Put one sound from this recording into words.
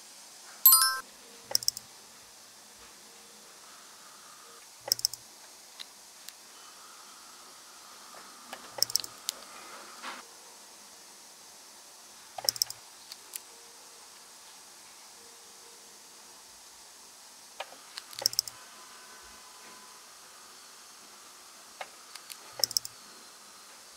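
Small metal drill bits click as they are pulled from a plastic holder.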